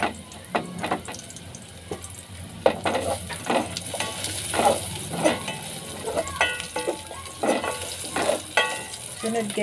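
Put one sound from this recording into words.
A ladle scrapes and knocks against a metal pot.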